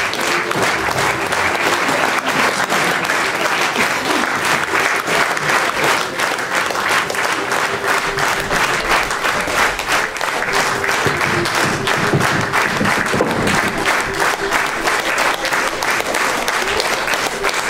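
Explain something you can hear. An audience claps loudly and steadily in a large hall.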